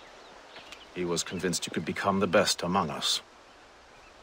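A second man answers in a low, calm voice, close by.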